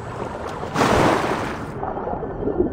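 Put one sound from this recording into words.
Water splashes loudly as a swimmer plunges under.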